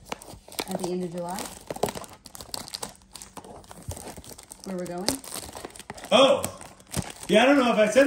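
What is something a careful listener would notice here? Plastic wrap crinkles and tears as a box is unwrapped.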